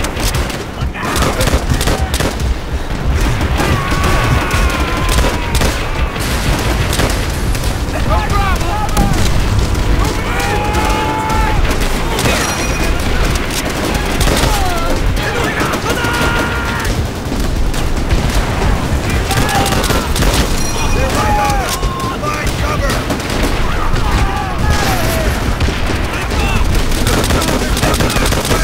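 Rifle shots crack rapidly and repeatedly.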